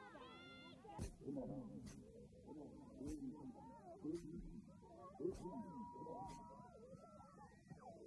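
A woman sobs and cries out in distress.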